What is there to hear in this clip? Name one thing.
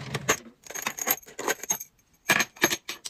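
Plastic pens rattle as a hand sifts through them.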